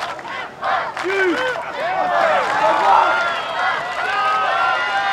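A crowd of spectators shouts and cheers loudly outdoors.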